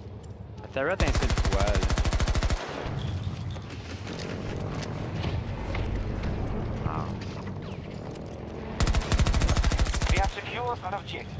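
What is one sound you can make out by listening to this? A rifle fires rapid bursts of automatic fire.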